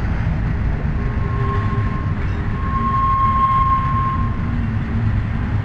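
Steel wheels squeal on the rails as a freight train passes.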